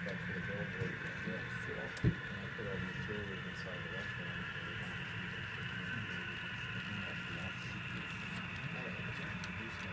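A model train's motor hums steadily as the locomotive rolls along the track.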